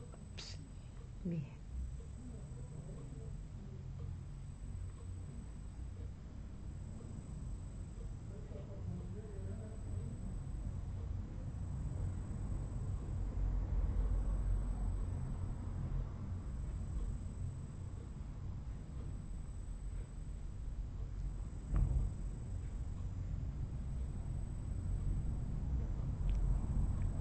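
A woman snores loudly and steadily close by.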